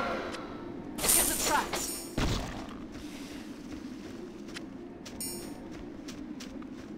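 A magic spell whooshes and shimmers.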